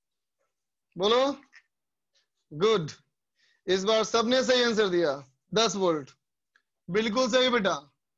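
A man lectures in a calm, explaining voice, close to a microphone.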